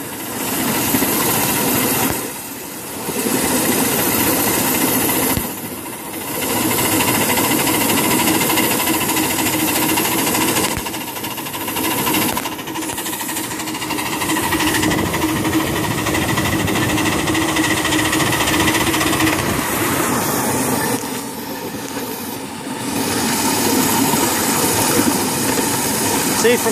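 Steel wheels rumble and clatter on the rails.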